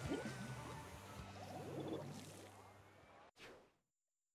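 Upbeat electronic game music plays and then cuts off.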